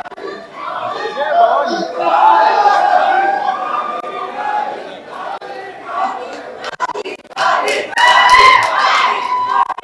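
A crowd of people cheers and shouts nearby.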